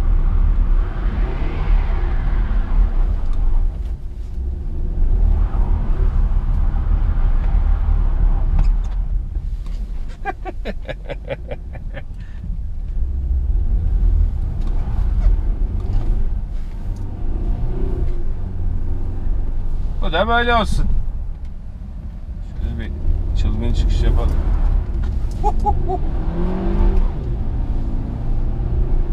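A car engine hums and rumbles steadily from inside the cabin.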